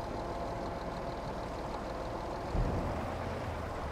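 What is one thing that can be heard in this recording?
A trailer tips its load of grain with a rattling pour.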